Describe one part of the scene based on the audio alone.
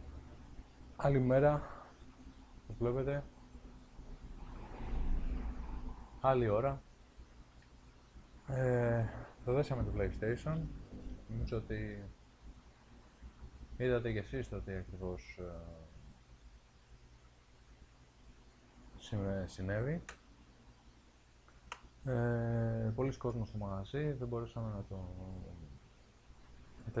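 A man speaks calmly and close by, pausing between phrases.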